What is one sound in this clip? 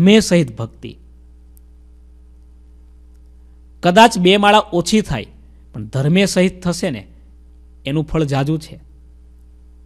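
A man speaks calmly into a microphone close by, in short phrases with pauses.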